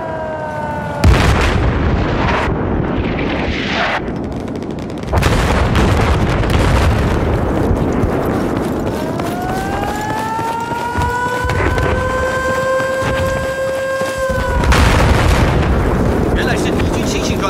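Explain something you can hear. Distant explosions rumble now and then.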